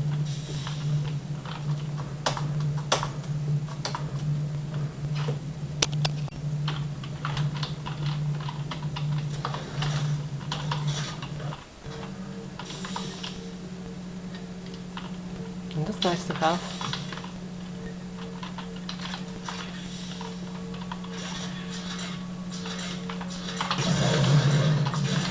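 A video game's music and sound effects play through small loudspeakers.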